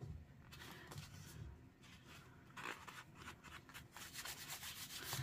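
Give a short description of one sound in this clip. Paper rustles and crinkles under hands close by.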